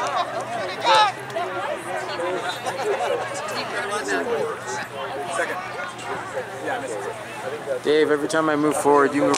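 Players and spectators shout and call out across an open outdoor field.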